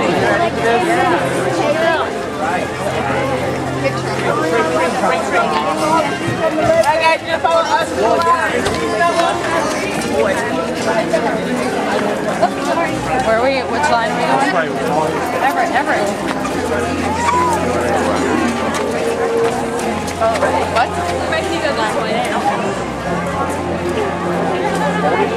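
A dense crowd of men and women chatters all around outdoors.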